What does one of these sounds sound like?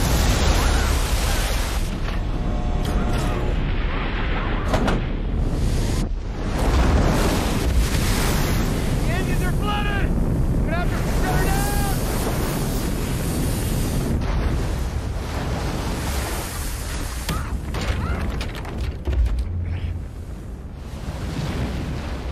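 Heavy water roars and crashes against a craft.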